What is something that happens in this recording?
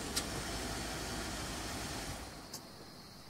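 A car engine rumbles as the car pulls in.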